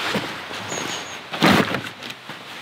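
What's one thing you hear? A cardboard box thuds onto a plastic sled.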